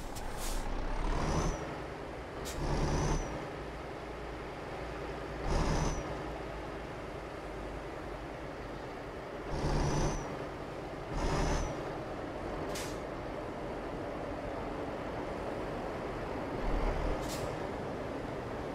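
A truck's diesel engine rumbles steadily, swelling in short bursts as it revs.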